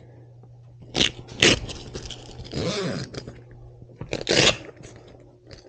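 A hook-and-loop strip rips open.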